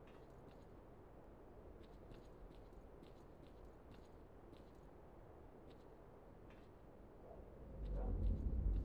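Footsteps clank on a metal grate.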